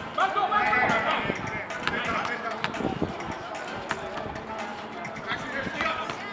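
Men shout and call out to each other.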